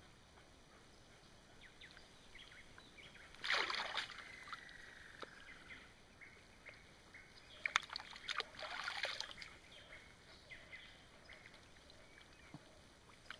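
Water splashes softly as a hand dabbles in it.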